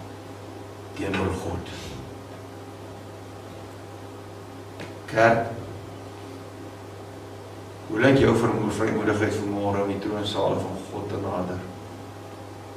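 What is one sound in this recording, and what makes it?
An elderly man speaks with feeling through a microphone, in bursts with pauses.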